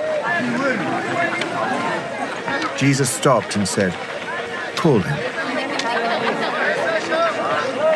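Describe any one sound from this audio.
A crowd of men murmurs and talks outdoors.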